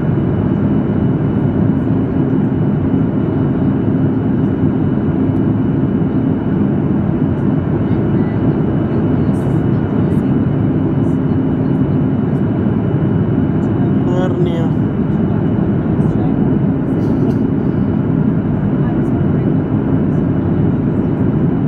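A jet engine roars steadily inside an airliner cabin in flight.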